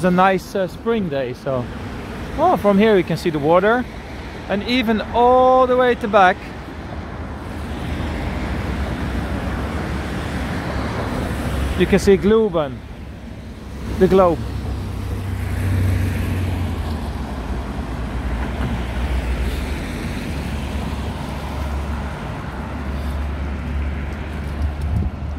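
A truck drives past on the road.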